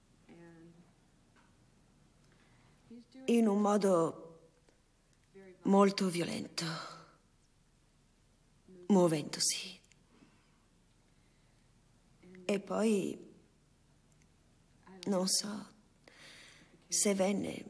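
A woman speaks emotionally into a microphone in bursts, with pauses between.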